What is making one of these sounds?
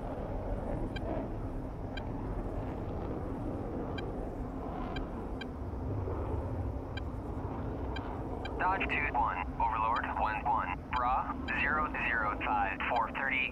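A jet engine idles with a low, steady rumble.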